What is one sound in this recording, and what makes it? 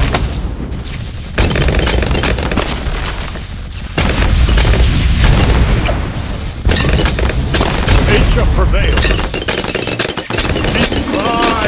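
Balloons pop rapidly in a cartoon game.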